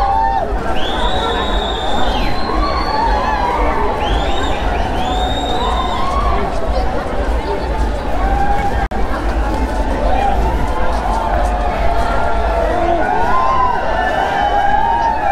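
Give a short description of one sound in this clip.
A crowd of young people chatters and shouts outdoors.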